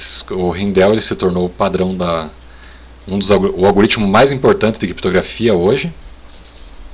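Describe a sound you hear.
A middle-aged man speaks calmly into a microphone, as if over an online call.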